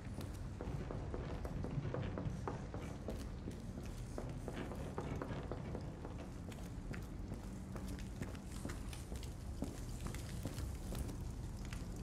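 Footsteps thud on wooden stairs and floorboards.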